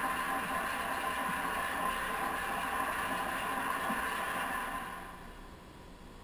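Video game music plays through a television speaker, then fades away.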